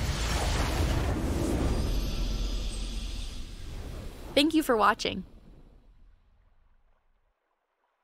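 A triumphant victory fanfare swells.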